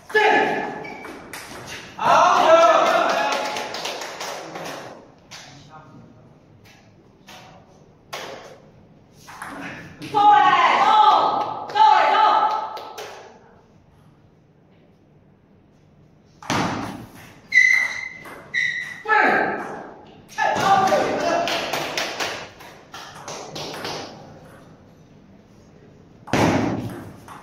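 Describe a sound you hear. A ping-pong ball clicks back and forth off paddles and a table.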